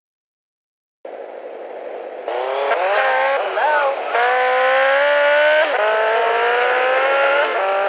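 A motorcycle engine revs and roars as it speeds up.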